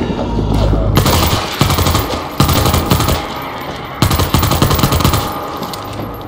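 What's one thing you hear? A rifle fires rapid bursts of shots that echo.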